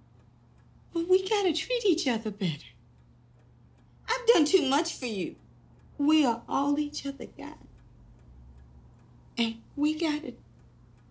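A middle-aged woman speaks with emotion, close by.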